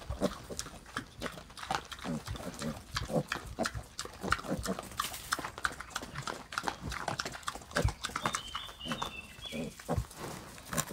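Piglets grunt and squeal softly.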